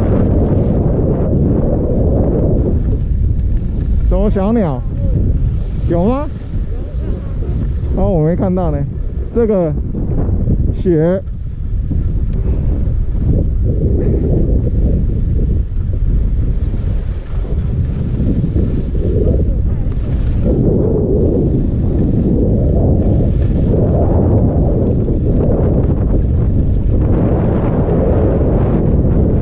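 Wind rumbles and buffets steadily against a microphone.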